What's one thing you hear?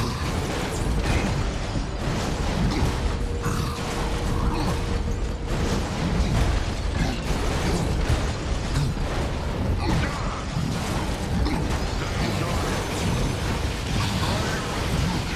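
Gunfire and energy blasts crackle and boom in rapid bursts.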